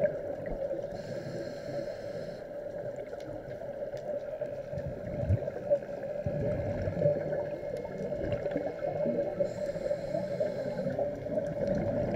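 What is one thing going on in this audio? A scuba regulator hisses with each breath.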